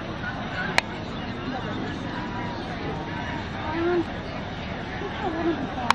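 A crowd of men and women chatters quietly outdoors.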